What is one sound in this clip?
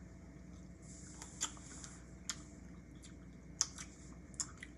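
Food is bitten and chewed close by.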